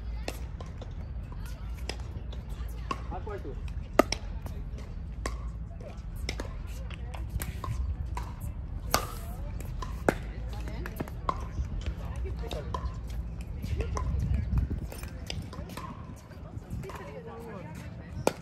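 Paddles hit a plastic ball with sharp pops, back and forth.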